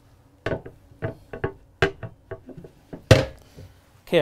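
A window latch clicks and knocks as it is handled.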